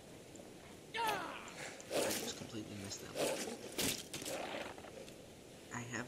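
A wolf snarls and growls.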